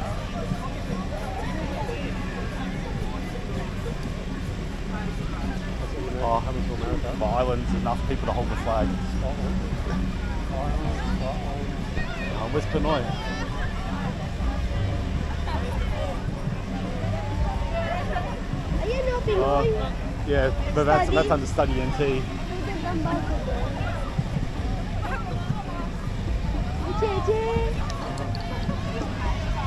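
A crowd of people chatter and call out outdoors nearby.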